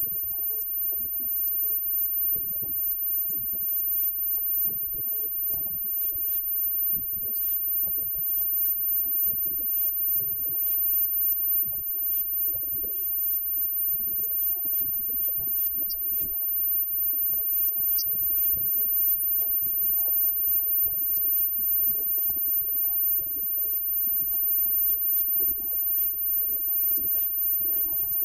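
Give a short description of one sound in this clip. A live band plays rock music loudly in a room.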